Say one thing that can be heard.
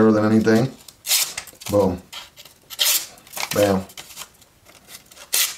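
A sharp knife slices through a sheet of paper with a quick hiss.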